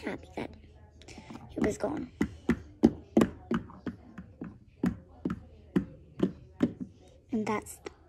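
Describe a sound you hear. A small dog's claws click and tap on a hard floor.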